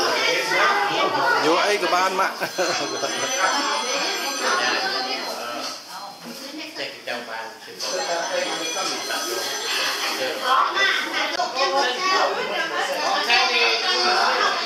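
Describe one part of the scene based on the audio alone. Many men and women talk and chatter at once, close by.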